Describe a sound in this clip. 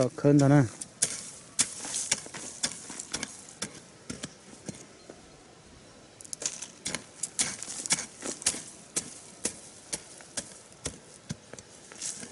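A hoe chops into dry soil again and again.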